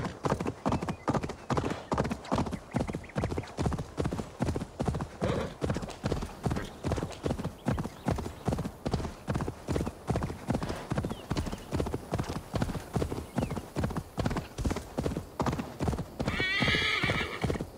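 A horse gallops steadily with rhythmic hoofbeats on soft ground.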